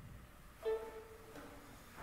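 A violin plays a brief last note.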